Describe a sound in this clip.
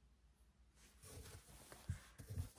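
Cloth rustles as it is smoothed and shifted.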